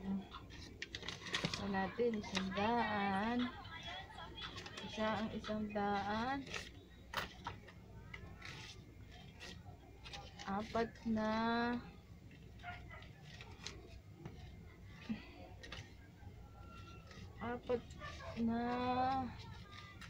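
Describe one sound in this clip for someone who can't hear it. Paper banknotes rustle and crinkle as they are handled.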